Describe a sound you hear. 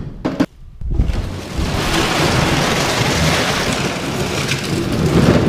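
Plastic jugs clatter and bounce as they are dumped.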